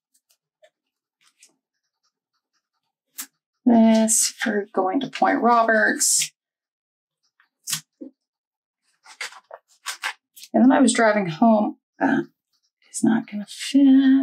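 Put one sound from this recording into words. A sticker sheet rustles softly as it is handled.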